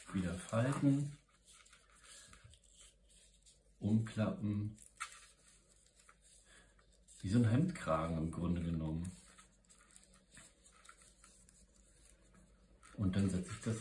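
A dry leaf rustles and crinkles as hands fold it.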